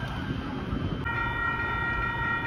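A railway crossing bell rings steadily.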